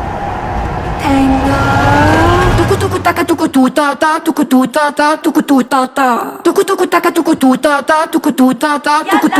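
A woman sings loudly.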